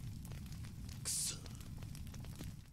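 A man grunts in frustration close by.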